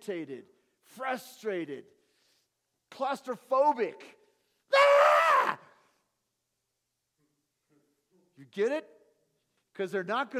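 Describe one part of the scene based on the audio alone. A middle-aged man speaks with animation in short bursts with pauses.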